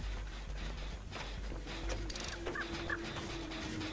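Footsteps rustle through tall dry grass.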